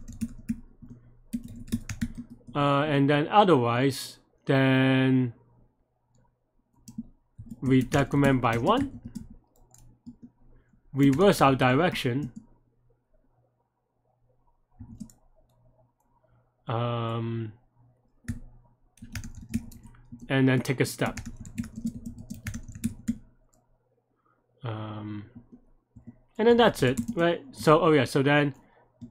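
Keyboard keys click as a man types.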